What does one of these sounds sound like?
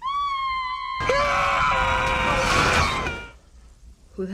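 A man cries out in alarm.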